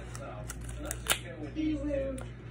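Plastic wrapper crinkles as it is torn open.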